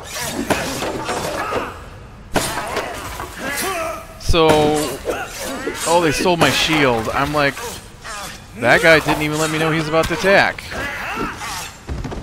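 Blades clash and thud as fighters trade blows.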